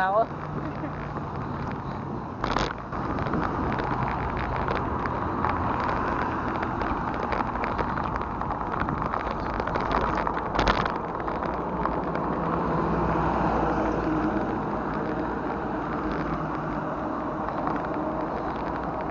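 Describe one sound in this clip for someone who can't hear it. Traffic rushes past steadily on a nearby road.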